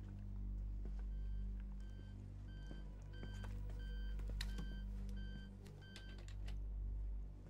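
A computer beeps in a steady, repeating pattern.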